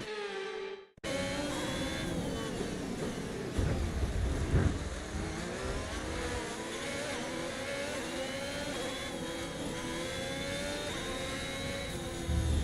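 A racing car engine whines at high revs, rising and falling as it shifts gears.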